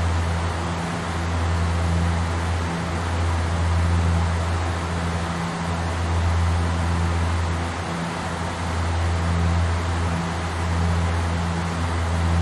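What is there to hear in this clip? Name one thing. Aircraft engines drone steadily with a low hum and rushing air.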